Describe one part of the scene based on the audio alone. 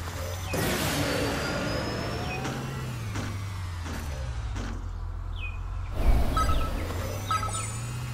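A small kart engine hums steadily as it races.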